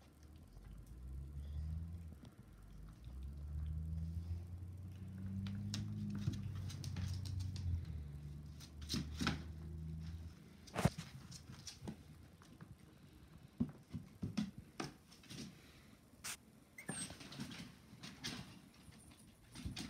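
Small puppies scuffle and patter about.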